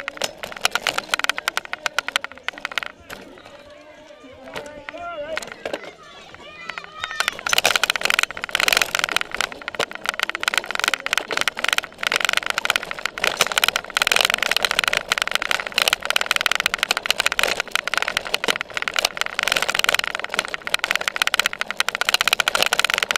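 A bicycle rattles and clatters over bumpy ground.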